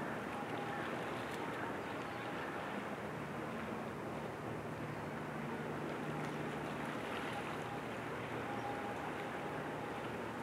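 Calm water laps softly against a rocky shore.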